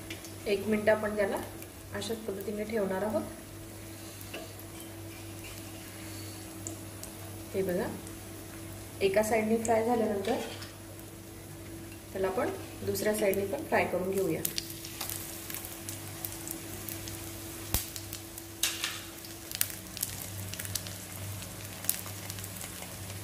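An egg omelette sizzles in oil on a flat iron griddle.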